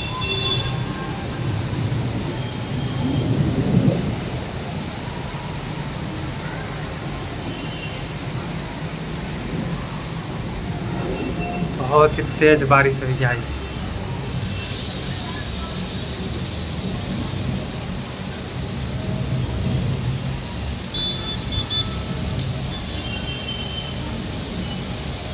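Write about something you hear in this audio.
Heavy rain pours steadily outdoors.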